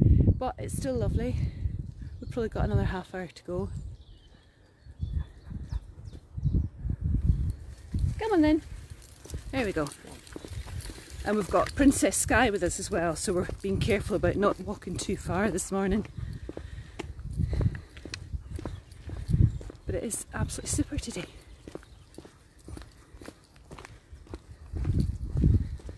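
Footsteps tread on a paved lane.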